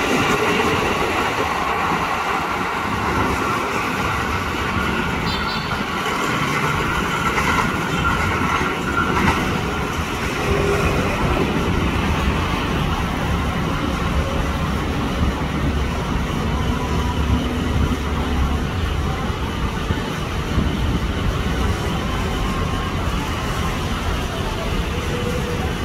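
An electric train rumbles along the rails, steady and close at first, then slowly drawing away.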